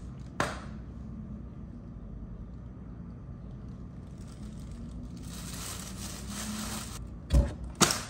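A paper wrapper crinkles.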